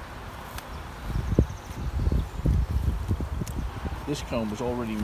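A wooden frame knocks and scrapes as it is lowered into a hive.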